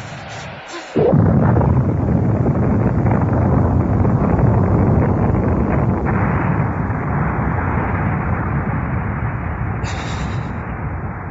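A huge explosion roars and rumbles on and on.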